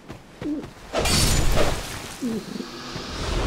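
A fire spell bursts with a loud roar.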